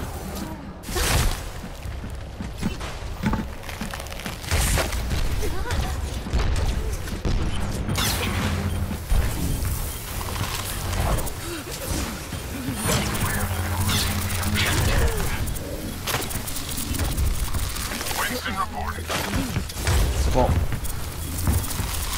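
Game gunfire and blasts crackle in bursts.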